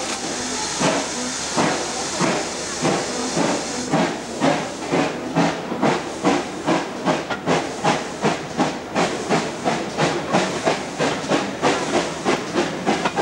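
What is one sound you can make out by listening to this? Train wheels clack rhythmically over rail joints, speeding up.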